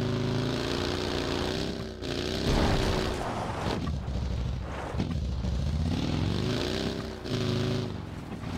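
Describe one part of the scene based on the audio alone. A buggy engine revs and roars, rising and falling in pitch.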